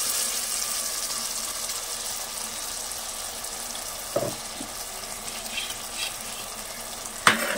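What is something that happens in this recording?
Food sizzles and bubbles in a hot pot.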